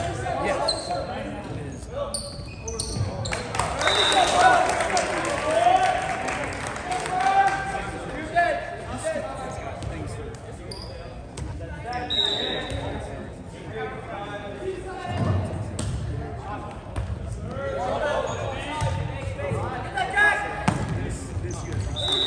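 A volleyball is struck by hand.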